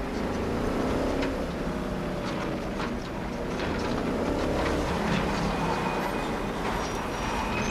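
A vehicle engine hums steadily.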